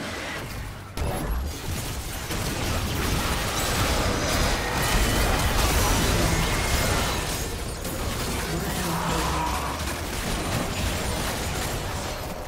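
Magic spells crackle and burst in a chaotic fight.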